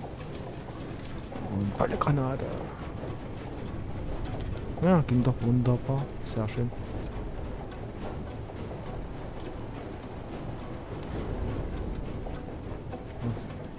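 A machine rumbles low and steadily.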